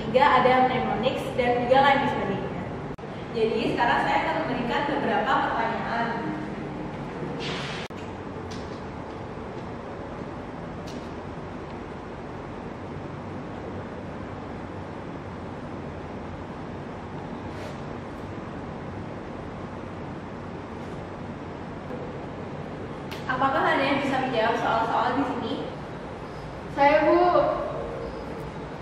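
A young woman speaks with animation to a room, close by.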